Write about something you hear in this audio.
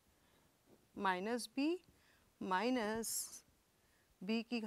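A woman speaks in a clear, explaining voice close to a microphone.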